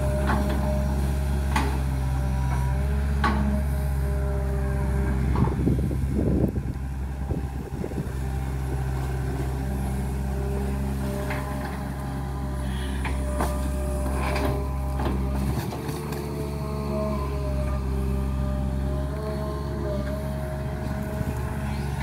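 A diesel engine of an excavator rumbles steadily nearby.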